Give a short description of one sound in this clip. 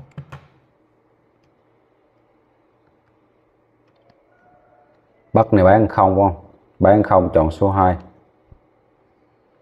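Calculator buttons click softly as they are pressed.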